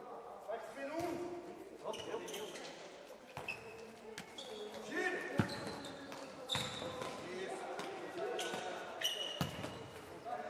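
A ball is kicked with sharp thuds that echo in a large hall.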